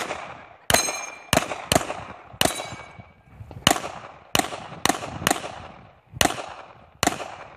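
A pistol fires loud, sharp shots in quick bursts outdoors, each ringing out with a short echo.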